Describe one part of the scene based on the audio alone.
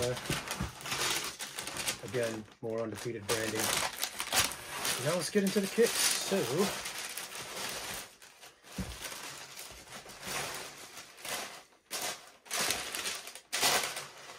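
Paper rustles and crinkles as it is unwrapped.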